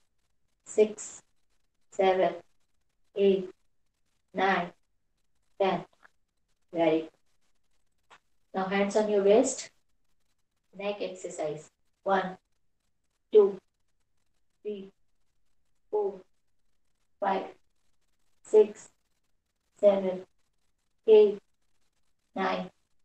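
A woman counts aloud in short, sharp bursts through a microphone, with pauses between them.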